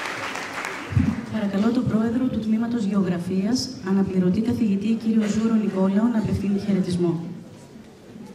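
A woman speaks into a microphone through loudspeakers in a large hall.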